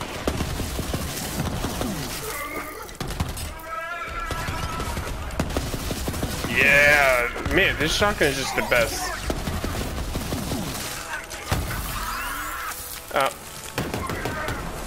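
Rapid gunfire crackles and thumps throughout.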